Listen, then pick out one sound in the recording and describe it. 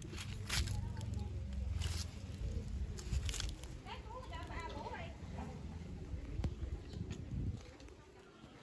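Leaves and plants rustle as someone pushes through them.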